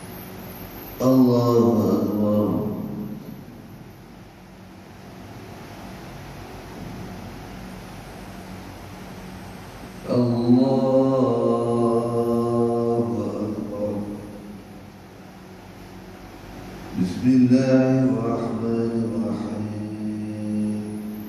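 A man chants prayers aloud in long, drawn-out phrases in a large echoing hall.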